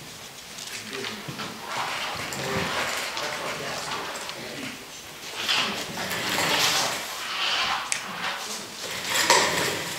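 Footsteps shuffle on a hard floor as a man walks around.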